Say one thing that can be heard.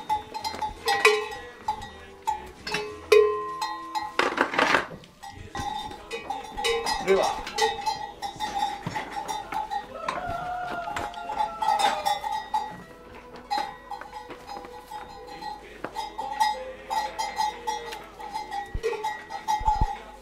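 Cattle hooves shuffle and clatter on the floor.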